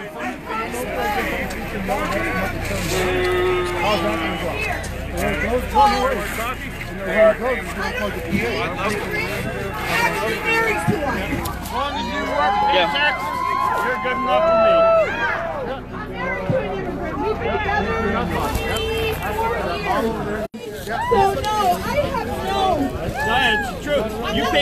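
A crowd of men and women talks and murmurs all around outdoors.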